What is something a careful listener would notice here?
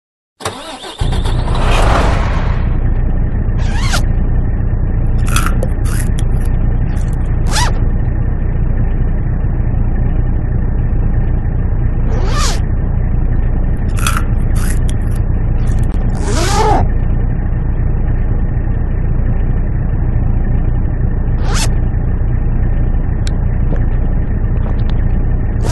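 A truck's diesel engine idles with a steady low rumble.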